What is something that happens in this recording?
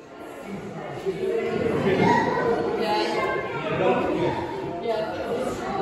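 A young child talks and babbles close by.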